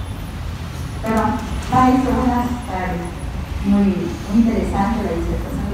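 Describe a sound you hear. A woman speaks into a microphone, amplified through loudspeakers in a large room.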